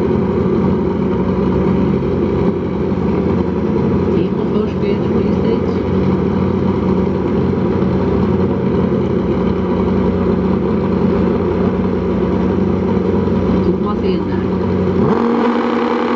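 Two racing motorcycle engines idle with a loud, steady rumble.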